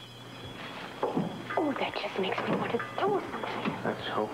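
A woman speaks anxiously nearby.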